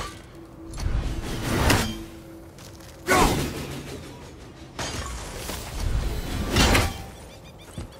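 A heavy axe whooshes through the air and strikes with sharp metallic clangs.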